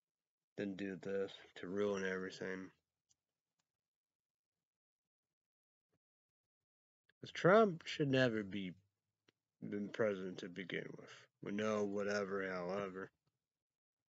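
A young man talks calmly close to a microphone, in short bursts with pauses.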